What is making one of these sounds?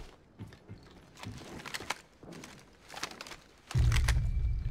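Footsteps run quickly over a hard floor.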